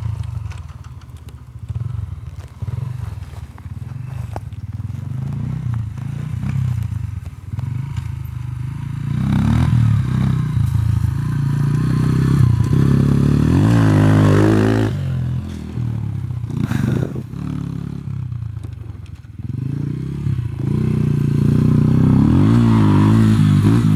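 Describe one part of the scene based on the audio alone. A 125cc four-stroke enduro dirt bike with an aftermarket exhaust revs and climbs a dirt track, with the engine rising and falling as it shifts gear.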